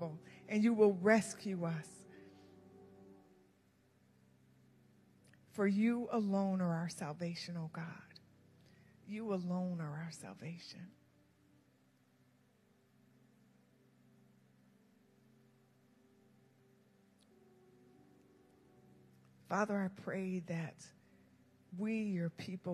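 A woman speaks slowly through a microphone in a large echoing hall.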